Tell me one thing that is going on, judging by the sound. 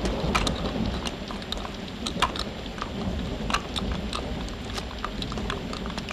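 Horses' hooves clop on hard ground.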